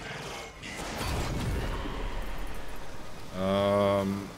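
An explosion booms and crackles with fire.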